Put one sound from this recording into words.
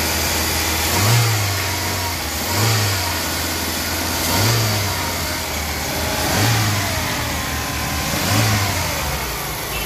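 A car engine revs up briefly several times.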